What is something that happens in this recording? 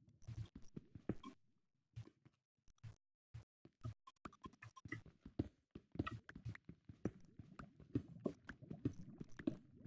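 A pickaxe chips at stone with quick, dull knocks.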